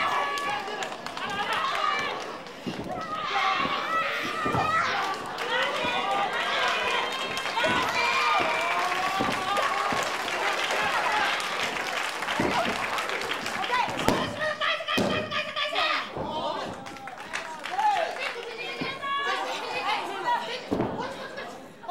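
A crowd of spectators shouts and cheers in a hall.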